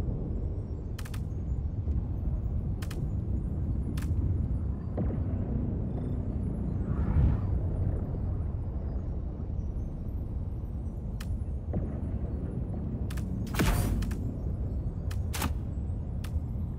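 Game menu clicks sound as items are selected.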